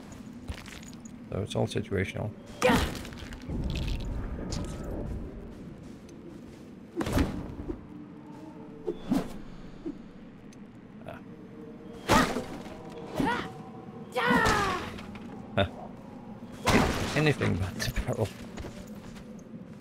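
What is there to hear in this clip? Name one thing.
Weapon blows land with sharp, heavy thuds.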